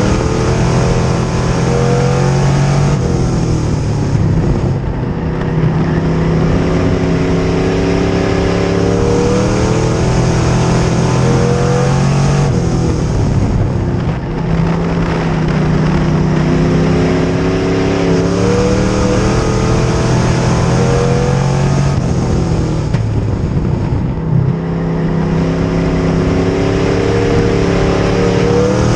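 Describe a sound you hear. A race car engine roars loudly from close by, revving up and down over and over.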